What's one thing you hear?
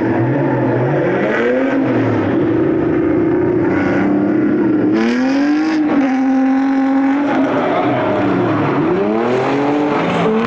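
Car engines rev hard, rising and falling in pitch.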